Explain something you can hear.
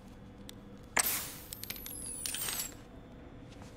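Mechanical arms whir and click.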